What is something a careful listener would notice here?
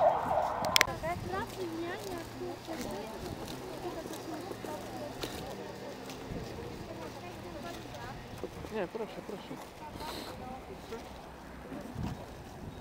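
Men and women talk quietly nearby outdoors.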